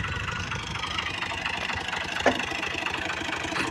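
A tractor engine rumbles and chugs nearby.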